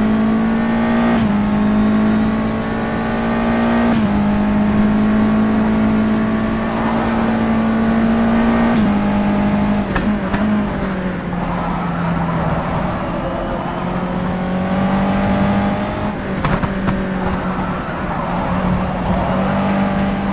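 A racing car engine drones loudly at high revs, shifting gears with sudden drops in pitch.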